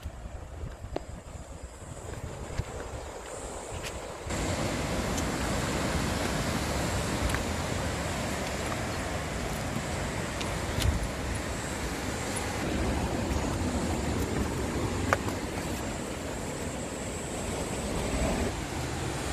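Ocean surf breaks on rocks far below.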